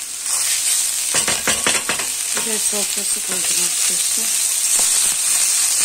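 A thick sauce plops into a pan.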